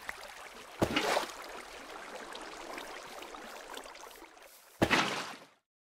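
Water splashes and sloshes in short bursts.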